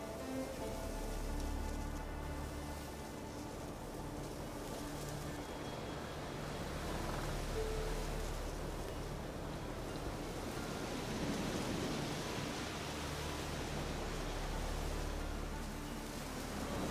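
Footsteps rustle through dense brush.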